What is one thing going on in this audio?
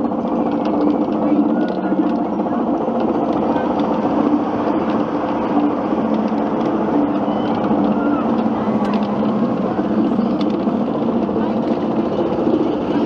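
A roller coaster's lift chain clanks and rattles steadily as the car climbs.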